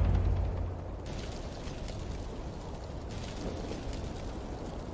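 A fire roars and crackles in a large brazier.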